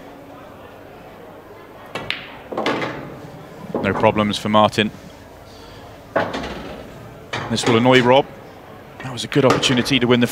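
A cue strikes a pool ball with a sharp click.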